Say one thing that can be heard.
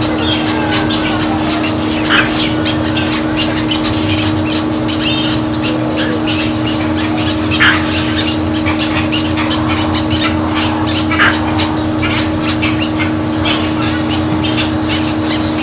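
An alligator crawls out of shallow water and scrapes softly across dry dirt.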